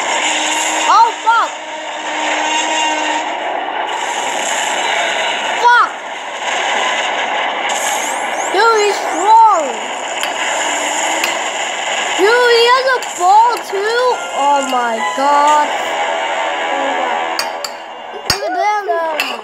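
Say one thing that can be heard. Music plays steadily through a television speaker.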